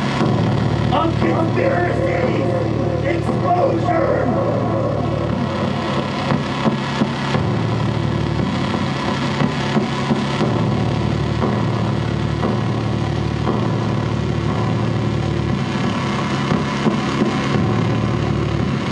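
Loud music with a heavy, steady bass plays through speakers.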